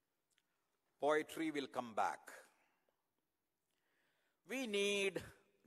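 An elderly man recites slowly and expressively through a microphone.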